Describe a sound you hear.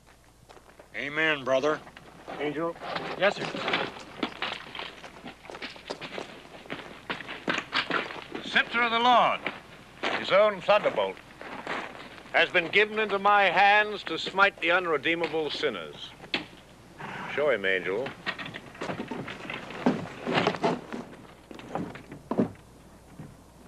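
Men talk calmly, close by.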